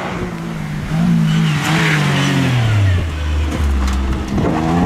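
A rally car's engine pitch drops as it slows for a bend.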